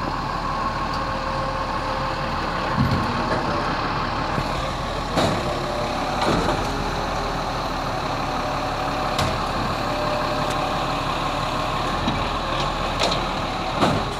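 A hydraulic arm whines as it lifts and lowers.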